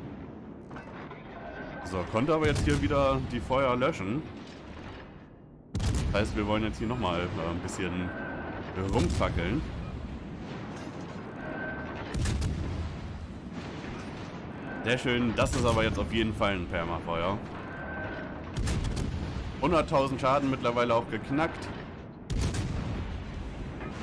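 Heavy naval guns fire with deep booming blasts.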